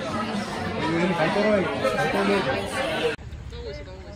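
Young women chat.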